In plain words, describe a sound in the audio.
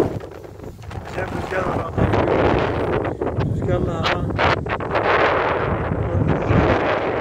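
Wind blows hard across an open field, rustling the long grass.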